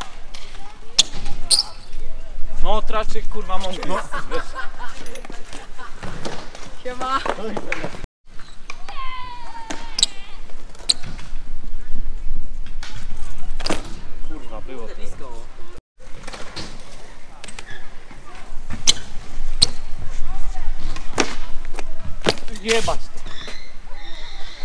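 A bike lands with sharp metal clacks and thuds.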